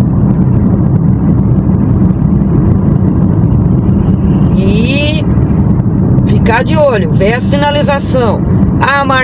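A car's engine hums and its tyres roar steadily on the road, heard from inside.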